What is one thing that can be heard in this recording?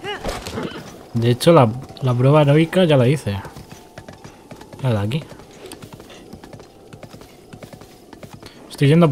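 A horse's hooves clop steadily on hard ground.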